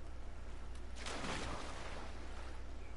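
Water splashes as someone wades into it.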